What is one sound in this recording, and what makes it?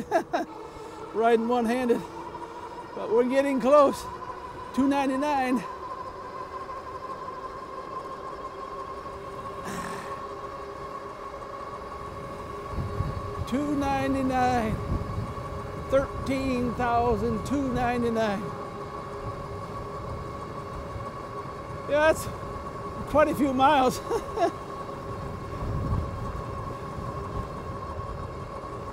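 Tyres hum on a paved road.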